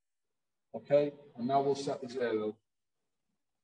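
A man speaks calmly through a microphone, close by.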